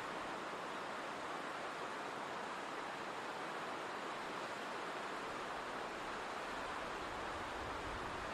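A stream rushes and splashes steadily over rocks.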